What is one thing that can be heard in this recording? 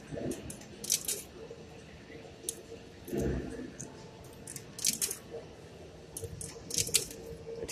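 An arcade claw machine plays a faint electronic jingle.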